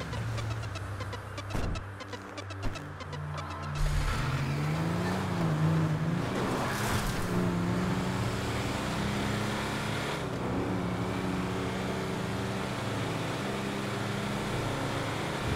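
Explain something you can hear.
A heavy truck engine rumbles and revs higher as the truck speeds along a road.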